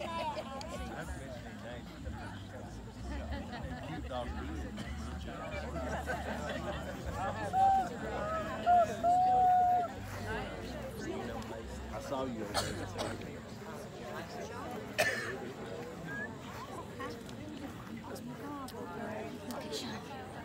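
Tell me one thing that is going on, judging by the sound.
A seated crowd outdoors murmurs and chats quietly.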